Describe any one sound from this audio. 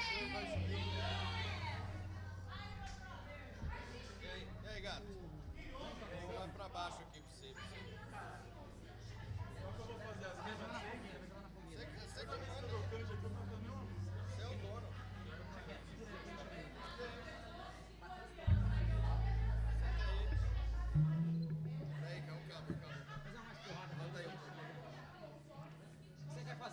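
A live band plays music in a room.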